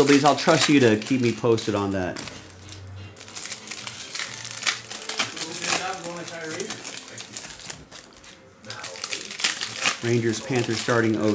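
Foil card packs crinkle and rustle in hands.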